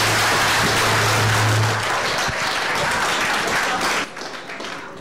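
An audience applauds loudly in a room.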